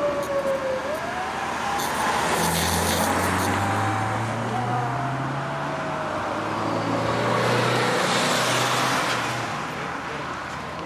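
A second car engine revs hard and roars past.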